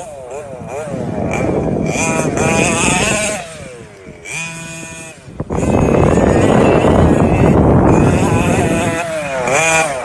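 Toy car tyres rush and scrape over snowy grass.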